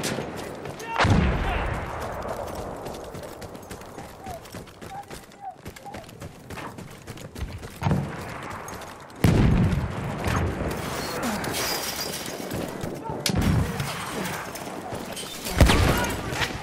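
Explosions boom at a distance and echo.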